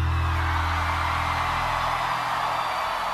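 A bass guitar rings out a low sustained note.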